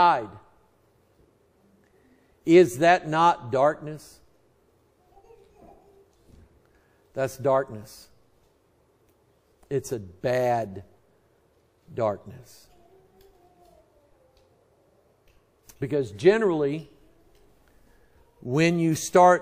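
A middle-aged man preaches through a microphone in short, emphatic bursts with pauses.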